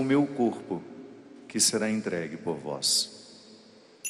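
A man chants slowly through a microphone.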